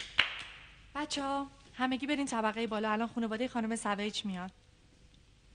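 A young woman sings in a clear, high voice close by.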